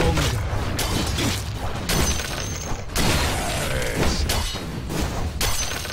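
Game spells whoosh and crackle in a fast fight.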